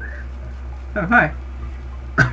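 A cartoon character grunts loudly.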